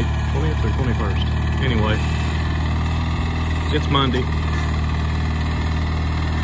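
A lawn tractor engine runs with a steady low rumble close by.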